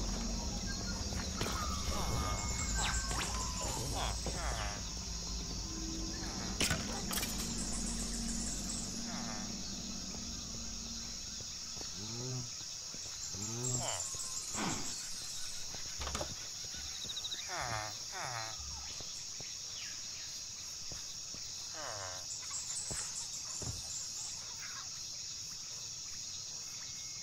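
Footsteps tread steadily over grass and stone.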